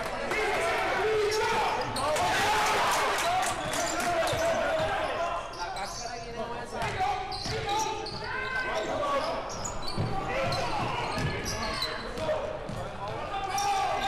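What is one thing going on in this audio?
A crowd in a large echoing gym cheers and shouts throughout.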